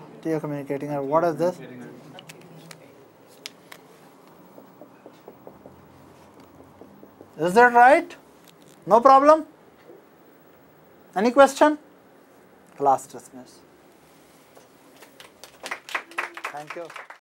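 A middle-aged man speaks calmly and clearly, lecturing close by.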